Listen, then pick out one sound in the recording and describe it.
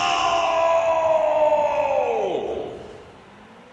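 A loud goal horn blares and slides down in pitch as it fades.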